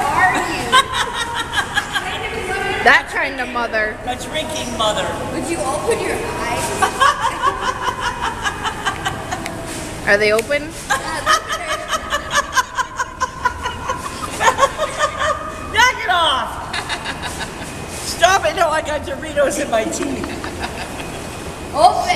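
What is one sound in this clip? A middle-aged woman laughs loudly and heartily close by.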